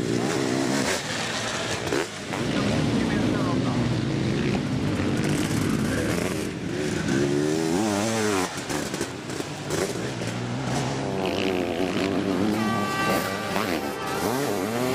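Motorcycle engines roar and rev up and down as sidecar bikes race past.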